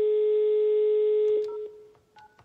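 A telephone dial tone hums steadily, then stops.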